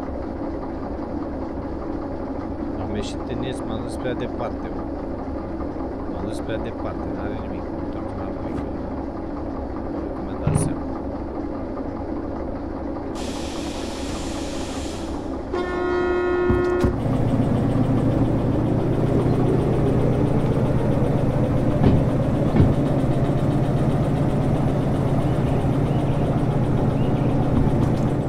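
Train wheels rumble and clack over the rails.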